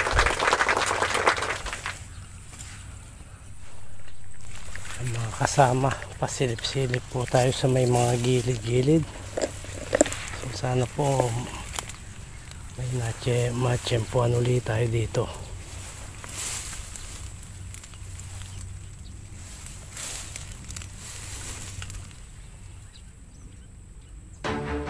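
Tall grass rustles and swishes as someone pushes through it.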